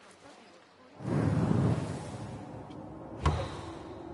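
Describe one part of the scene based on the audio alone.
A deep whoosh swells and fades.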